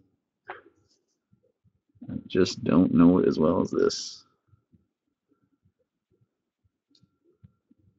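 Cards tap softly as they are set down on a table.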